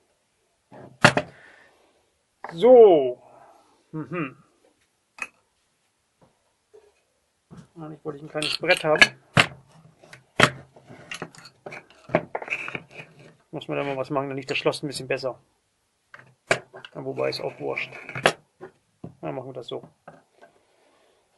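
A metal lock clicks and knocks against a wooden surface.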